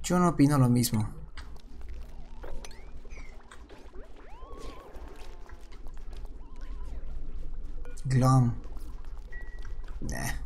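Soft electronic game sounds chirp and warble.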